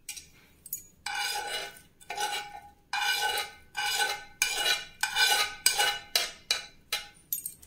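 A metal spoon scrapes repeatedly against a pan.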